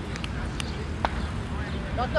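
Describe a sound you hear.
A cricket bat strikes a ball with a sharp crack outdoors.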